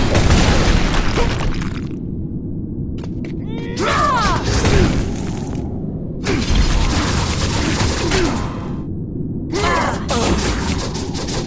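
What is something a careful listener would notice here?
Swords slash through the air and strike with heavy hits.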